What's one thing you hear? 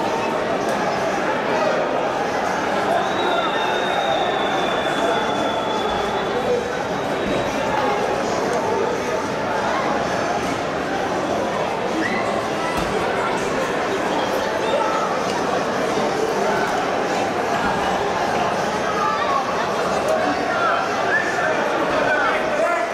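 A large stadium crowd chatters and cheers in a steady roar.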